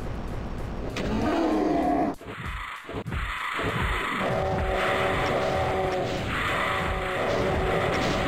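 Fireballs whoosh through the air.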